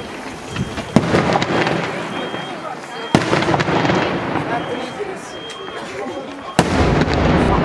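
Daytime fireworks burst overhead with sharp, loud bangs that echo away.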